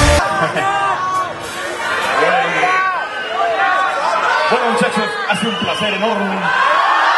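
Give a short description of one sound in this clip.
A young man sings into a microphone, heard through loudspeakers in a large echoing hall.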